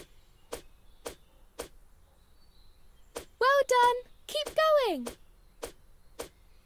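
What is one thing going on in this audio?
Skipping ropes slap the ground in a steady rhythm.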